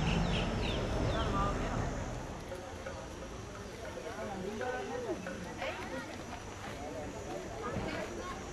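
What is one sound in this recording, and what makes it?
Young men talk casually at a distance outdoors.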